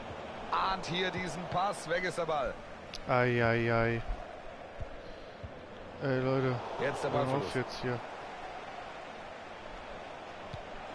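A large stadium crowd murmurs steadily in the background.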